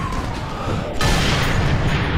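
A rifle fires with a loud, sharp crack.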